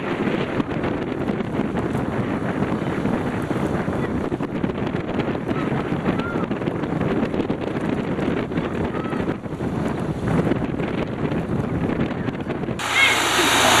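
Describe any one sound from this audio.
Wind blows hard outdoors over choppy water.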